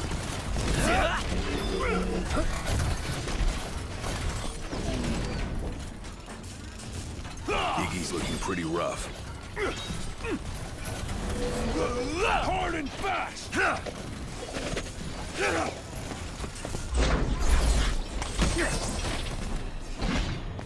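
Swords clash and slash in a fight.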